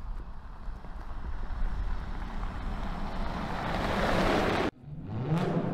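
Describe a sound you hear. A pickup truck engine roars as the truck drives past.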